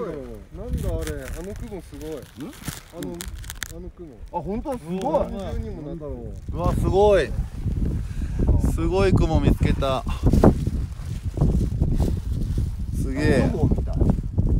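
A man talks with excitement close to the microphone.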